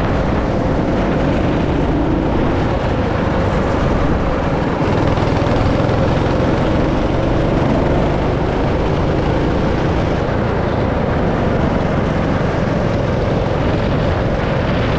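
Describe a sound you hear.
A go-kart engine drones loudly and steadily up close.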